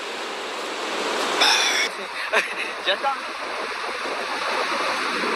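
Waves wash onto a beach with a steady roar.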